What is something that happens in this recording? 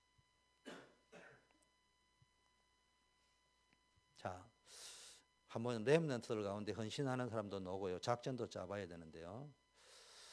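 A middle-aged man lectures calmly through a microphone.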